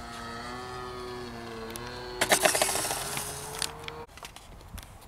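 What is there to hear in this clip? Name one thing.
A small jet engine whines loudly as a model plane flies past.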